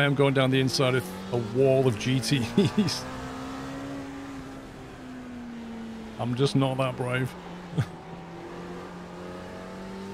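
A racing car engine drones steadily.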